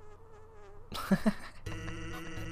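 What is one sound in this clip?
A whoopee cushion lets out a loud raspberry noise.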